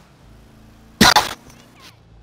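A car thumps hard against a curb.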